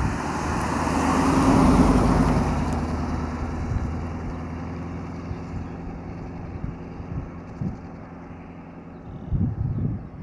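A car engine rumbles as it passes close by and fades into the distance.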